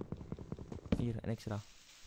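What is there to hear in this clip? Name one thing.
A wooden block breaks and drops.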